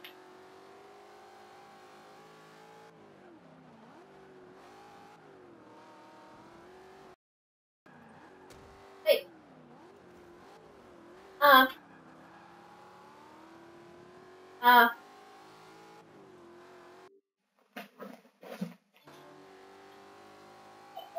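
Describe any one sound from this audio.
A racing car engine drones and revs up and down.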